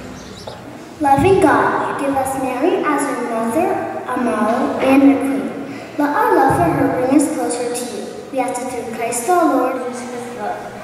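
A young girl reads aloud through a microphone.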